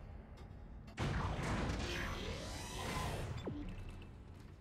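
A heavy metal door slides open with a whirring mechanical whine.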